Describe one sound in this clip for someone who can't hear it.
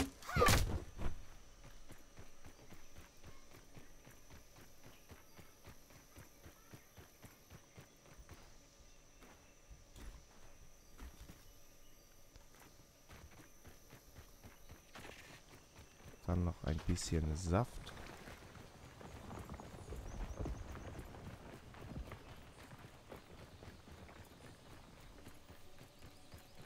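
Footsteps patter softly over dry ground.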